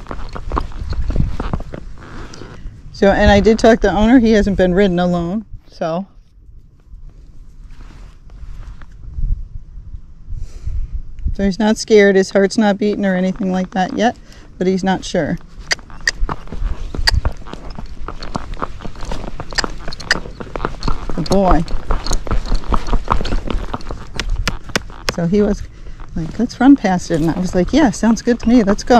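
A horse's hooves clop steadily on pavement.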